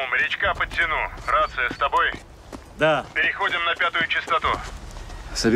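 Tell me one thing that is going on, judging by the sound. A man talks on a phone with animation.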